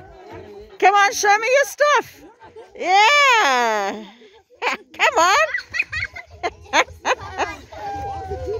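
A group of children and women shout and ululate excitedly outdoors.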